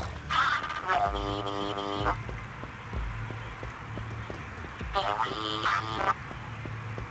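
Short electronic game tones beep and chime.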